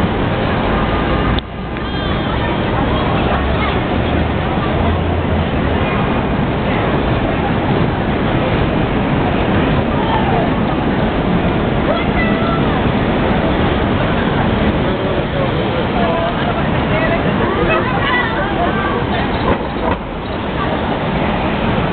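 A busy city street hums with traffic and crowd noise outdoors.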